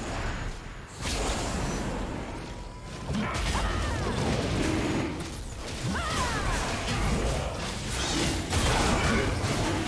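Magic blasts and combat effects whoosh and crackle in a fast fight.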